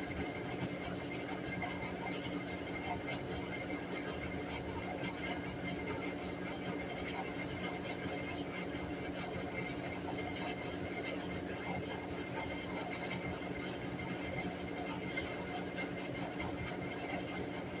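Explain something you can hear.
A top-load washing machine hums and whirs while spinning.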